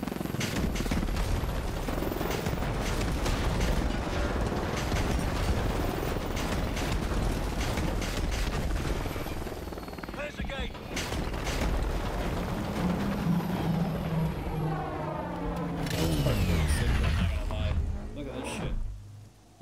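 A vehicle engine roars at speed.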